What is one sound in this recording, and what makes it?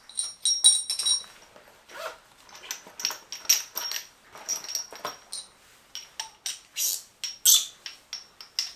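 Small metal parts clink and rattle in a person's hands.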